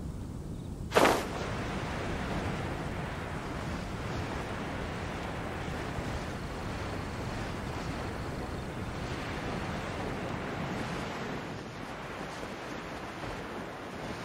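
Wind rushes steadily past a gliding figure.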